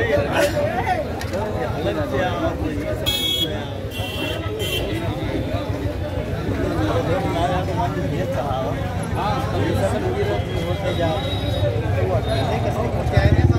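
A crowd of men talks at once outdoors.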